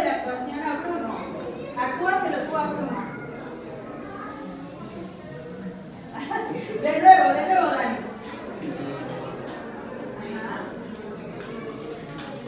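A crowd of children and adults chatter in a large echoing room.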